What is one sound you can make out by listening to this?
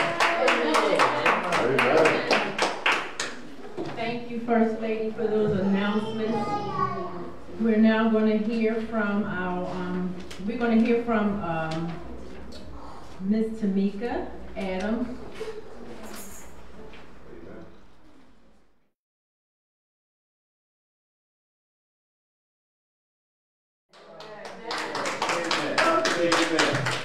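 A woman speaks calmly into a microphone in an echoing room.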